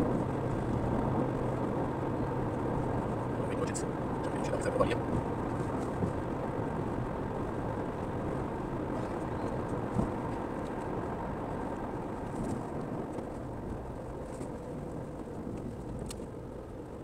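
Tyres roll steadily over an asphalt road.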